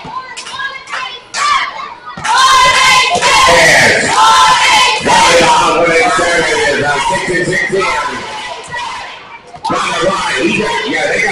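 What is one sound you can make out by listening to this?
A crowd cheers and chants loudly in an echoing hall.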